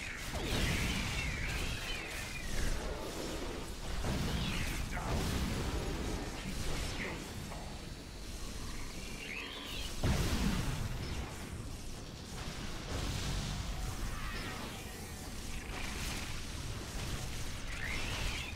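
Laser blasts and energy bursts crackle and boom repeatedly.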